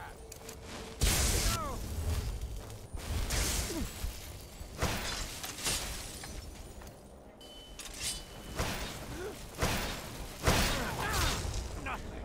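A sword slashes and clangs in bursts.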